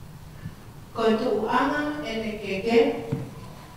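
A woman speaks briefly and calmly close by.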